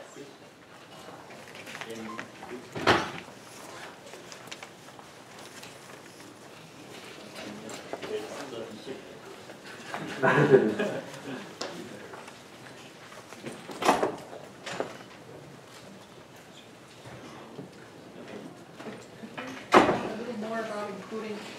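A man speaks calmly in a large echoing room.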